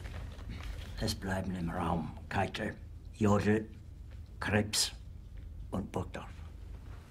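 An elderly man speaks in a low, strained voice, close by.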